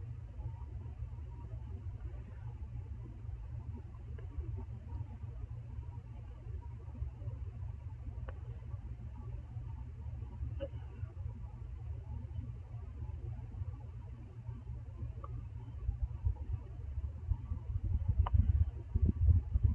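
Short game menu beeps sound now and then.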